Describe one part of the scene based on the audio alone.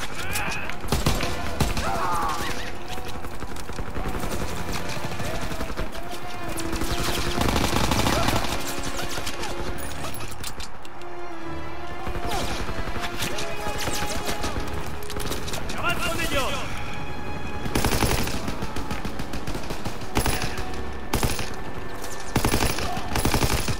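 A rifle fires in short bursts, loud and close.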